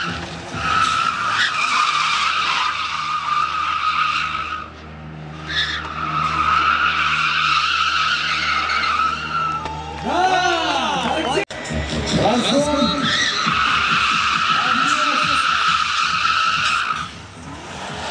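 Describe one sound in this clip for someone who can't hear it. Car tyres squeal loudly as a car drifts on asphalt.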